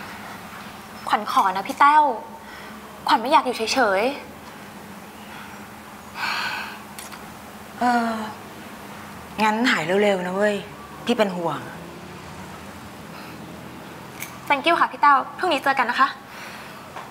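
A young woman speaks close by, in a tense, pointed tone.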